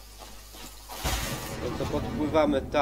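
A body plunges into water with a splash.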